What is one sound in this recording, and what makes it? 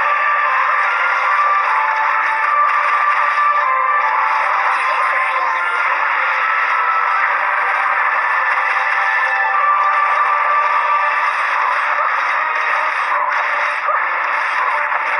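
Upbeat game music plays.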